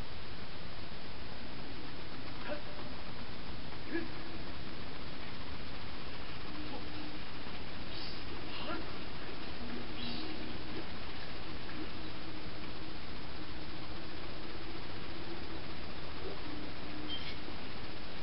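Electronic game music and effects play faintly from a television speaker.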